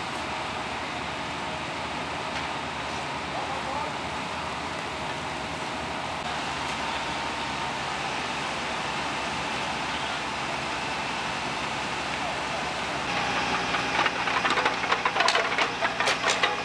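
A fire engine's motor drones steadily.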